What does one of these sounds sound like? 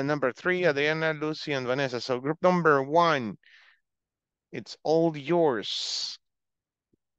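A man speaks calmly through a headset microphone on an online call.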